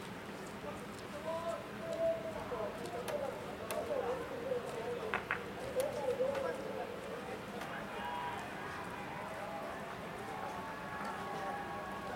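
Men and women in a crowd talk at a distance.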